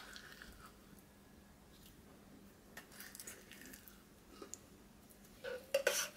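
A wooden spoon scrapes and taps against glass.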